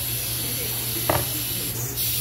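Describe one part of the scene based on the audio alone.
A metal weight clinks down onto a table.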